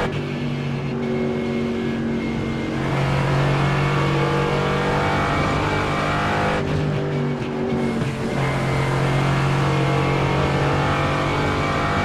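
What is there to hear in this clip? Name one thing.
A racing car engine roars loudly at high revs, its pitch shifting as the gears change.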